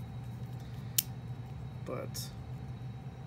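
Small plastic parts click as they are snapped onto a toy figure.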